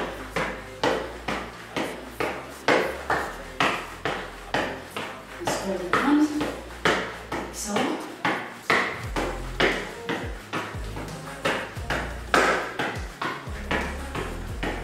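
Bouncing boots thump rhythmically on a hard floor.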